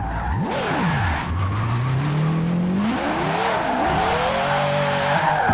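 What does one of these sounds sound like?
A racing car engine revs hard, rising and falling in pitch as the gears change.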